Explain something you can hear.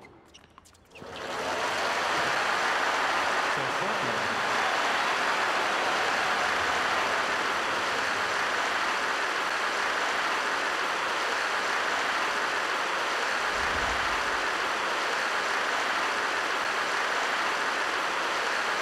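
A large crowd claps and cheers loudly.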